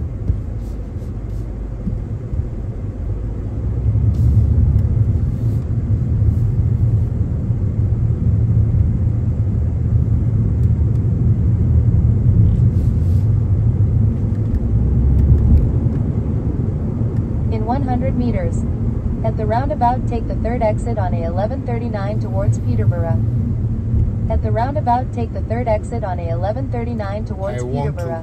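A car engine hums with a low road rumble throughout.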